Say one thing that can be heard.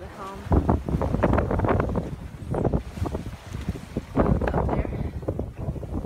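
Waves rush and splash against a moving boat.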